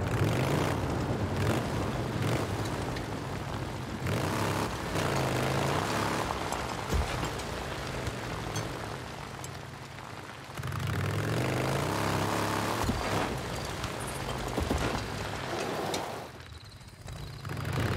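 A motorcycle engine rumbles and revs up and down as it rides over rough ground.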